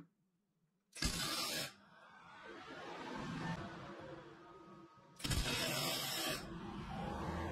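A welding torch crackles and buzzes in short bursts.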